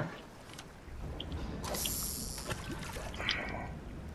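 A fishing reel whirs as a line is cast.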